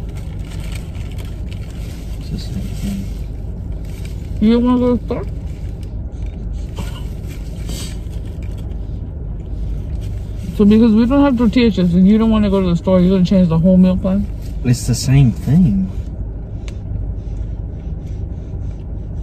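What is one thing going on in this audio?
Food wrappers rustle and crinkle.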